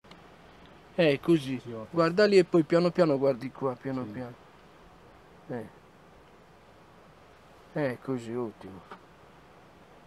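An elderly man speaks calmly and close by, outdoors.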